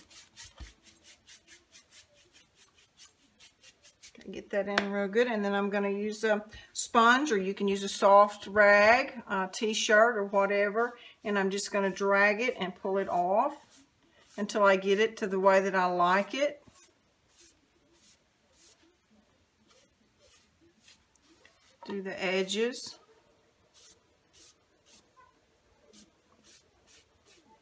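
A sponge rubs softly across a wooden board.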